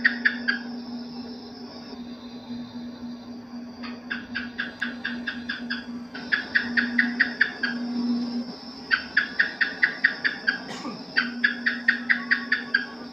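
Geckos chirp in quick bursts of sharp clicks.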